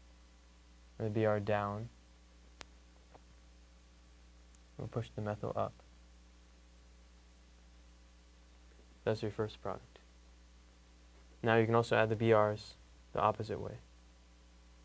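A young man speaks calmly in short bursts, close by.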